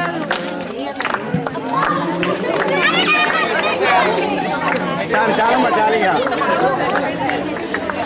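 A crowd of men and women chatter and call out outdoors.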